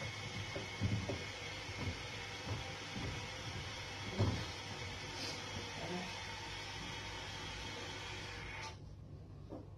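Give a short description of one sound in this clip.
A cloth squeaks as it wipes a mirror.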